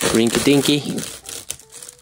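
Plastic packaging tears open.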